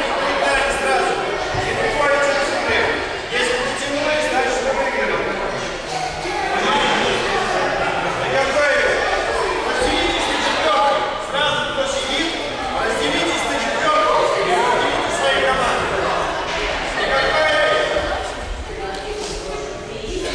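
A man speaks to the children in a raised voice.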